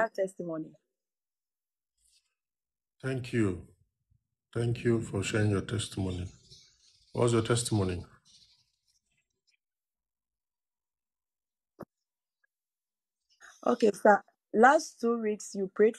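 A man speaks calmly and close up, with pauses.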